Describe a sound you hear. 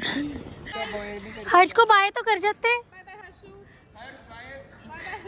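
A young woman calls out cheerfully outdoors.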